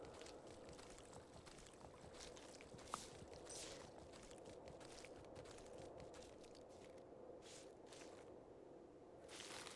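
A horse gallops with quick hoofbeats.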